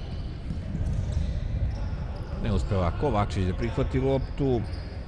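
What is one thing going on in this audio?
Sneakers squeak on a hard court in an echoing hall.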